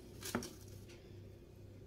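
A spatula scrapes herbs across a wooden board.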